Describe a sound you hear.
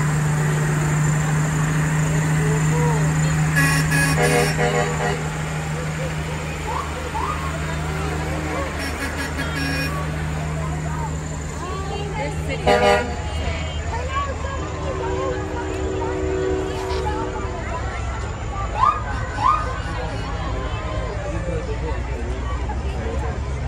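A crowd of men, women and children chatters outdoors.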